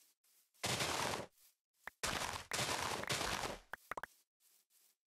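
Plant stalks break with loud rustling crunches.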